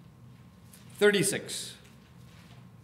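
A middle-aged man speaks briefly and calmly through a microphone.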